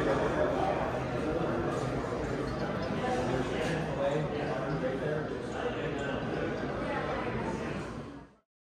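A crowd of people chatters in a large, echoing room.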